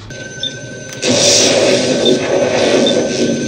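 An electronic toy blasts a loud rushing hiss.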